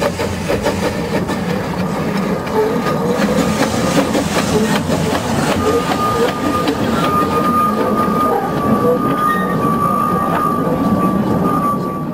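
Wheels clatter and squeal on the rails as carriages roll past.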